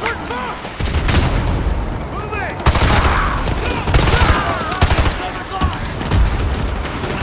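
A rifle fires loud, rapid bursts of gunshots close by.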